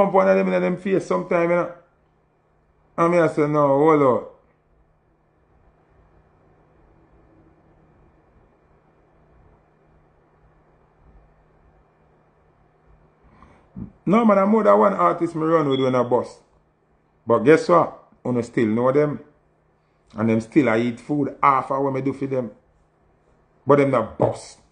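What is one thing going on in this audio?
A man speaks with animation in short bursts, close to a phone microphone.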